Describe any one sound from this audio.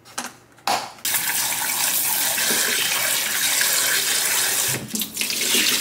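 Tap water runs and splashes into a bowl.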